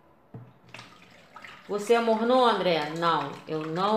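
Liquid pours and splashes into a tub of water.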